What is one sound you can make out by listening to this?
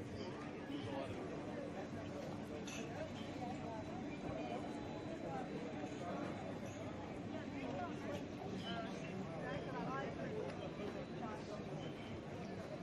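A crowd chatters in a busy outdoor street.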